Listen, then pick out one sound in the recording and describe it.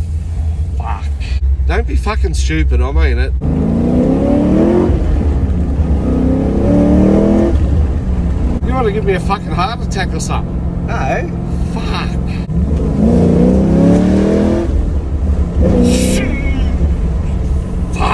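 An elderly man gasps and exclaims nearby.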